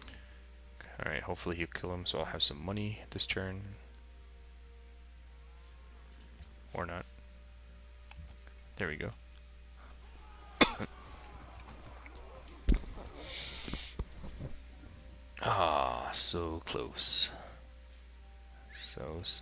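A young man talks casually into a microphone, close up.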